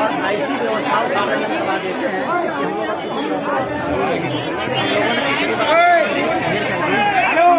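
A large crowd of men talks and shouts at once, close by, outdoors.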